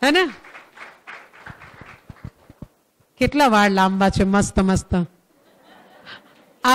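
A middle-aged woman talks animatedly into a microphone.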